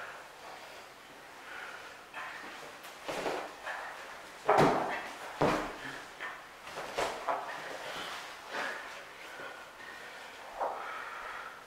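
A man grunts and breathes heavily with effort.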